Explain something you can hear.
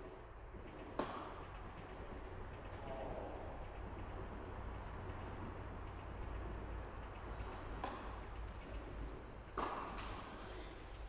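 A tennis ball is struck by a racket with a sharp pop that echoes in a large hall.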